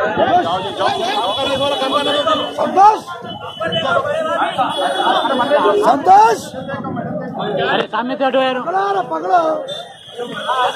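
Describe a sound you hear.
A crowd of men shout and call out excitedly nearby.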